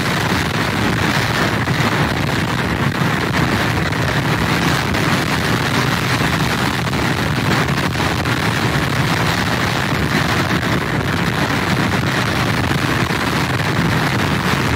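Strong wind roars outdoors.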